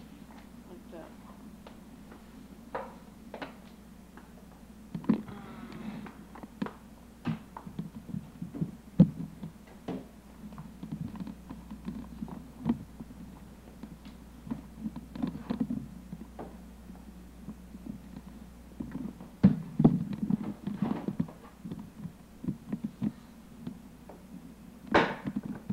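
A small child babbles softly nearby.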